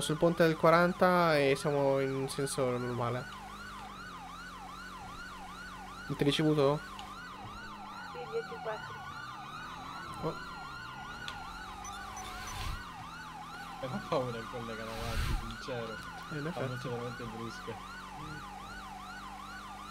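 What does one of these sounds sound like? A police siren wails rapidly and steadily.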